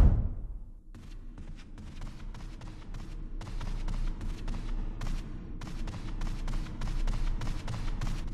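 Footsteps thud steadily on wooden stairs.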